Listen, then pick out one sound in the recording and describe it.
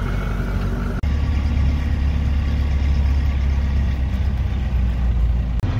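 Tyres rumble steadily over a gravel road.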